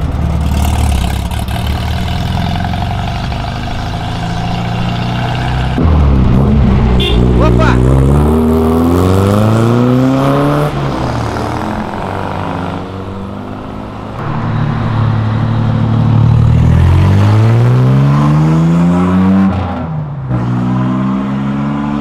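Old car engines rumble loudly at idle and while pulling away.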